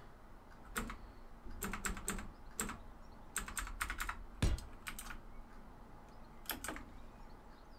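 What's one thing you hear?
Short soft clicks sound as building blocks snap into place.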